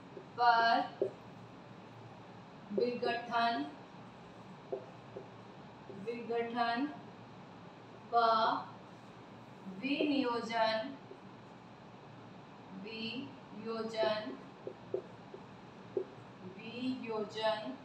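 A woman speaks slowly and calmly in short phrases, close by.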